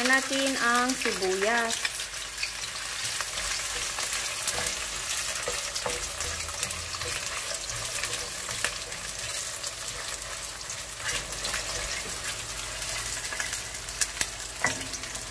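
Onions sizzle in hot oil in a pan.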